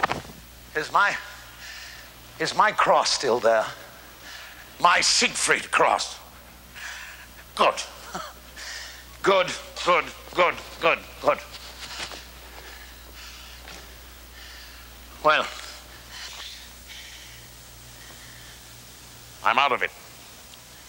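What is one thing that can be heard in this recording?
An elderly man speaks with feeling, in bursts between pauses.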